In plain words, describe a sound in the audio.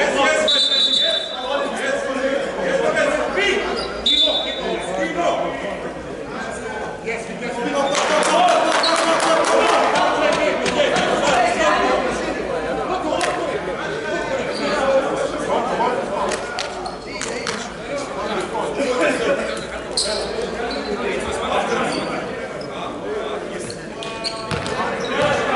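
Young men call out and talk to each other across the court.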